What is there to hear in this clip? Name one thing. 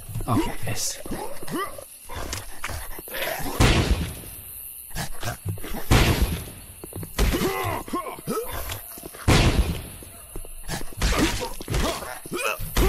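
Heavy punches land with thuds and whooshes.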